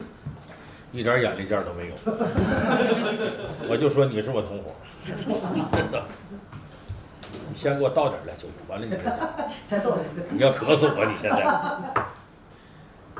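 A middle-aged man talks calmly and with animation into a nearby microphone.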